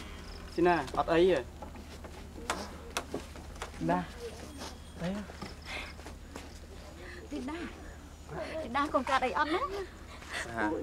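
A woman calls out with concern nearby.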